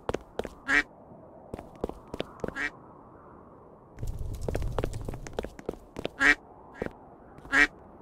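Quick light footsteps tap in a game.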